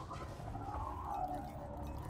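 Explosions boom in a space battle.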